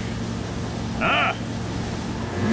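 A middle-aged man cries out in pain.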